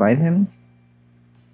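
A young man speaks loudly and briefly, close to a microphone.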